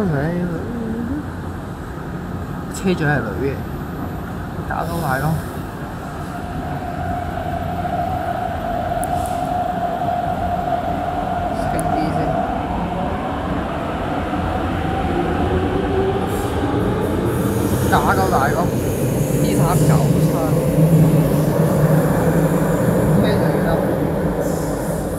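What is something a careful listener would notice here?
A train rumbles closer and rolls past along the track.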